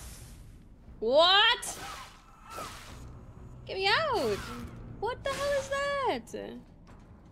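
A young woman exclaims and squeals with animation close to a microphone.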